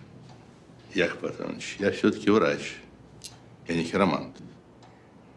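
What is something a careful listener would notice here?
An older man answers calmly in a low voice, close by.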